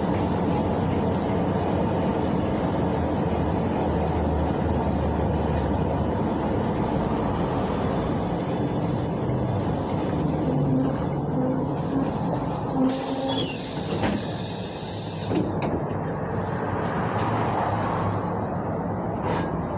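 A bus rattles and shakes over the road.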